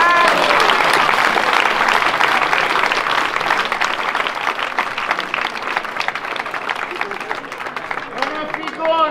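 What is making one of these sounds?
A large crowd claps and cheers outdoors.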